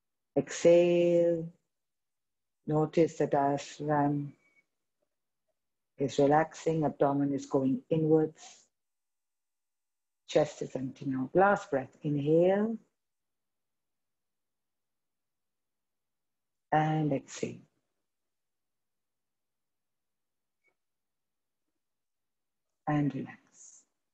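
A woman speaks calmly and slowly, heard through an online call, with long pauses.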